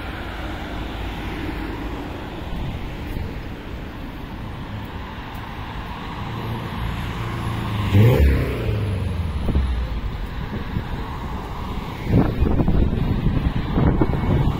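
City traffic rumbles steadily along a busy road.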